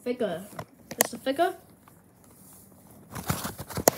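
A pencil case rustles against a soft blanket.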